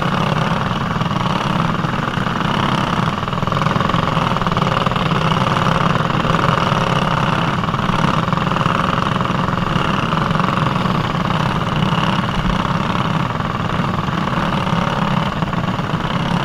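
Other kart engines whine just ahead.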